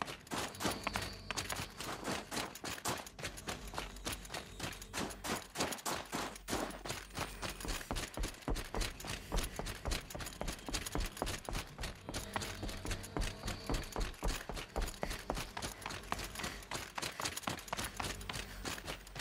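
Footsteps crunch through snow at a steady pace.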